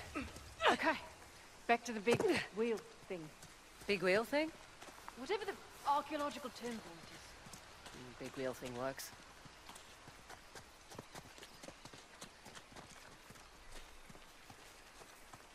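Footsteps patter quickly over grass and stone.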